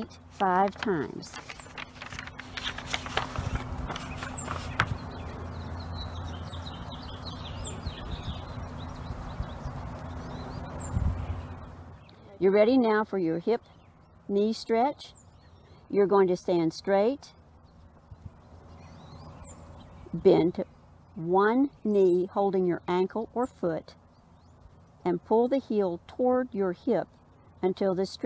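A middle-aged woman speaks calmly nearby.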